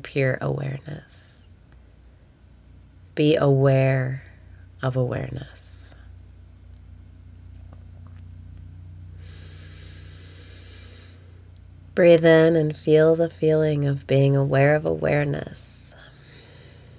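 A young woman speaks calmly and cheerfully, close to a microphone.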